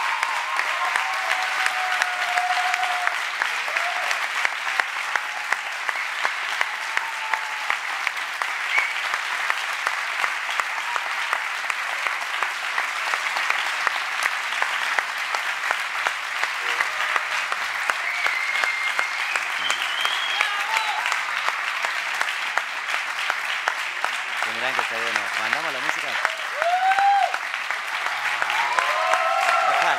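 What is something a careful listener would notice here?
A large theatre audience applauds.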